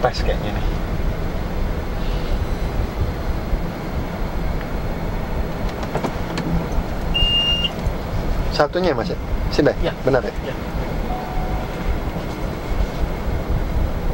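A man talks calmly close by inside a car.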